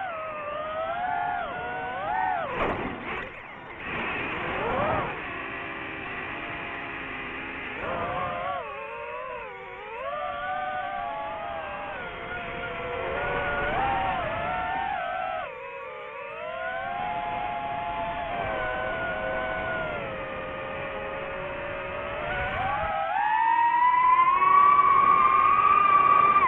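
Drone motors whine steadily, rising and falling in pitch as the drone swoops and climbs.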